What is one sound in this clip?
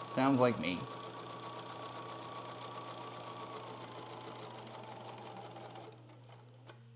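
A sewing machine runs steadily, stitching quickly.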